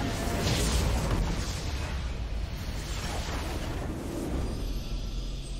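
A crystal shatters in a loud, rumbling explosion.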